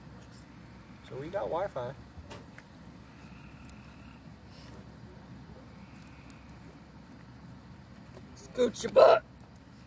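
A campfire crackles and pops softly.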